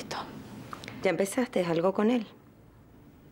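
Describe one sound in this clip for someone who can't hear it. Another young woman answers calmly, close by.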